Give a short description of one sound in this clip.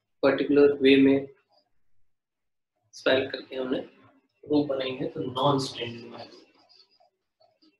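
A young man speaks calmly and clearly, as if explaining, close to a microphone.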